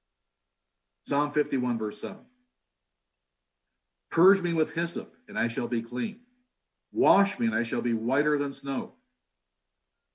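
An older man speaks calmly into a microphone in short phrases with pauses.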